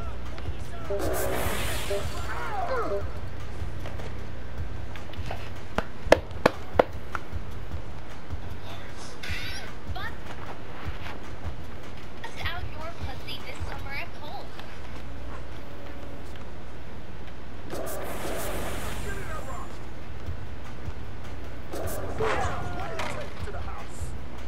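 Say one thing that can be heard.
Sneakers squeak sharply on a court.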